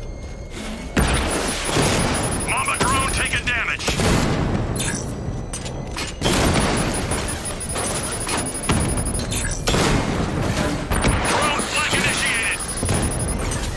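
A rapid-fire gun rattles in bursts.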